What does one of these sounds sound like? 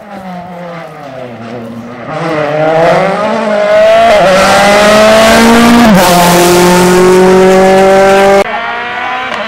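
A rally car engine revs hard and roars past close by, changing gear.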